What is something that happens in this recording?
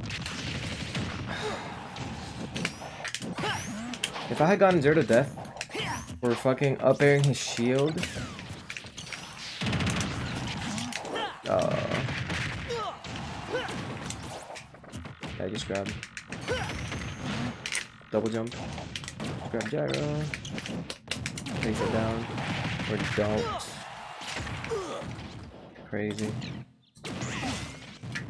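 Punches, blasts and explosions from a fighting video game crack and thump.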